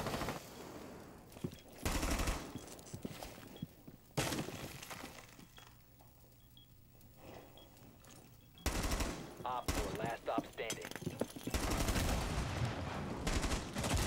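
A rifle fires short bursts of shots indoors.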